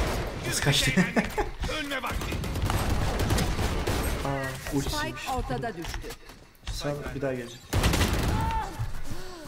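A shotgun fires with a loud boom.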